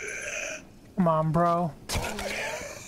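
A zombie groans and snarls while grabbing at someone.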